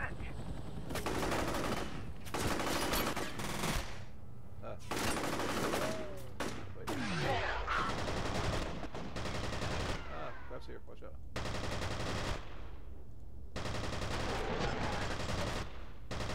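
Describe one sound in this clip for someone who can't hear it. Bullets strike and ricochet off walls.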